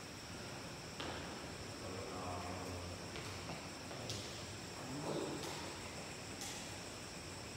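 A badminton racket strikes a shuttlecock with sharp pops in an echoing hall.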